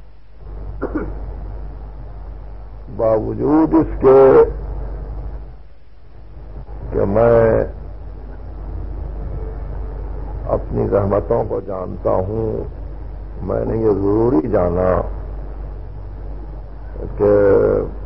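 An elderly man speaks with animation in a drawn-out, chanting voice, heard through an old tape recording.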